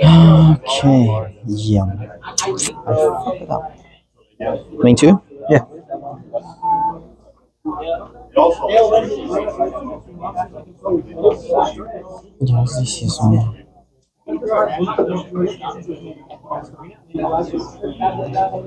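Cards slap softly onto a playing mat.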